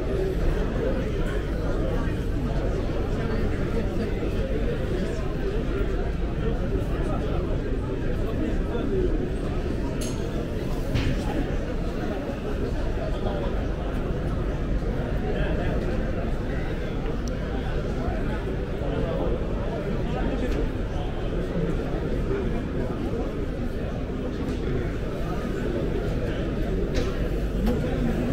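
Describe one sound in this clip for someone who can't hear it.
A crowd murmurs and chatters in a large echoing hall.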